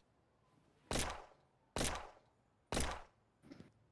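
Gunshots crack from a pistol, three in quick succession.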